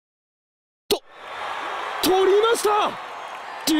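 A crowd cheers in a stadium.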